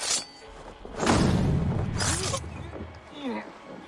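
A blade strikes a body with a heavy thud.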